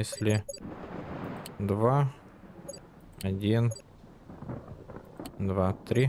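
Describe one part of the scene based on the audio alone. Keypad buttons beep as they are pressed.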